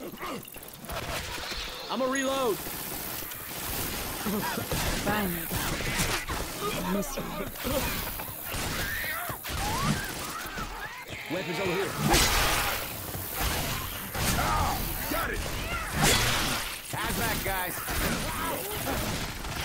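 A blade swishes through the air in quick slashes.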